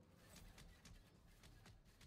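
A magical burst crackles and shimmers.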